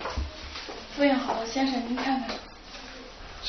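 A young woman speaks calmly and politely.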